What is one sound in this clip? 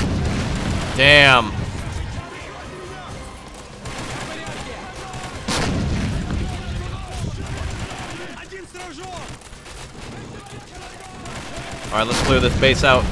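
Guns fire in sharp bursts.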